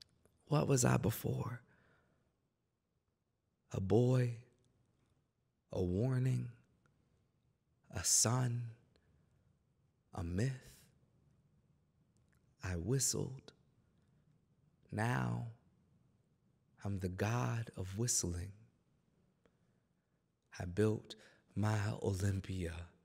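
A young man speaks slowly and deliberately into a microphone, in short phrases with pauses between them.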